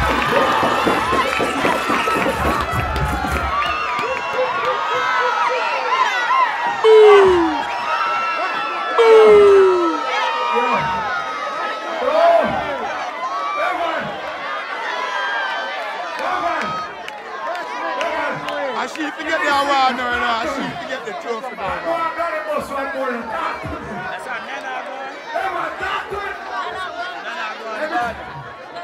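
Women in a crowd scream and laugh excitedly.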